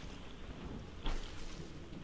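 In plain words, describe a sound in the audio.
An energy beam fires with a crackling hum.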